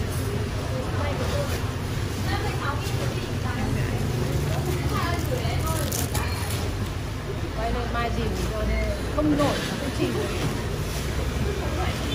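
A middle-aged woman talks nearby.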